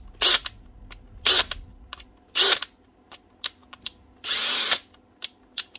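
A switch on a cordless drill clicks sharply several times.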